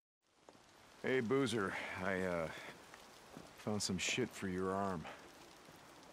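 A man speaks calmly and close.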